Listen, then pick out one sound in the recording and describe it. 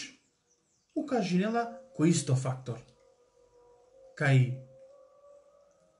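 A man speaks calmly and close up, in short phrases.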